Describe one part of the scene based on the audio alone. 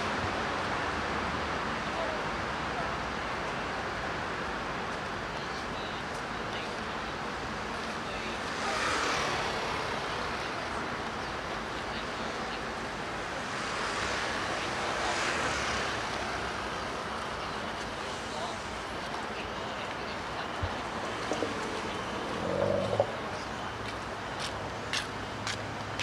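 Steady city traffic hums along a busy road outdoors.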